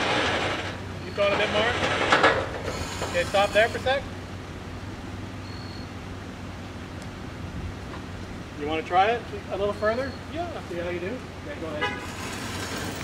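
A man talks casually nearby outdoors.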